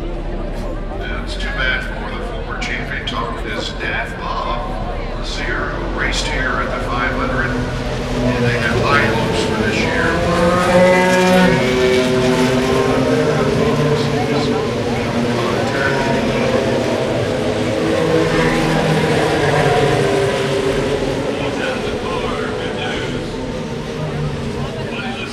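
A large grandstand crowd murmurs and cheers outdoors.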